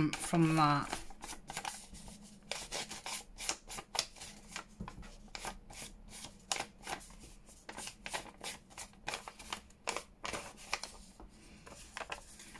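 An ink applicator taps and dabs rapidly against paper.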